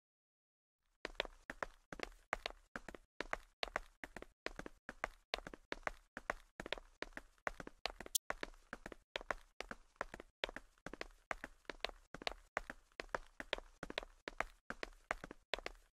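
Quick footsteps run over hard ground in a steady rhythm.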